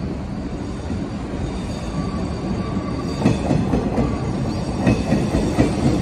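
Train wheels squeal faintly on the curving track.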